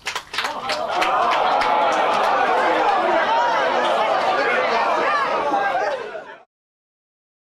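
A crowd of people chatters and laughs loudly.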